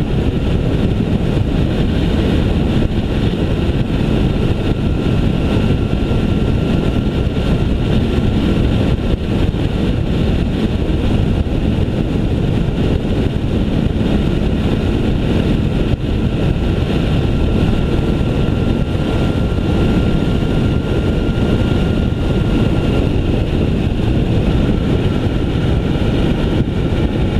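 A motorcycle engine hums steadily at cruising speed.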